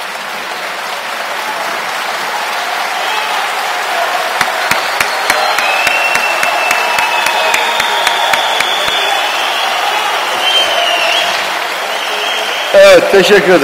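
A crowd claps and cheers in a large echoing hall.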